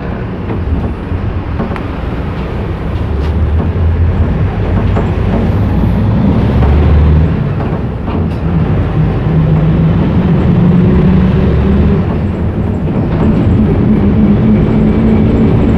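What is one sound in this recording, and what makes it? A train rumbles and hums steadily as it rolls along, its motor whine rising and falling.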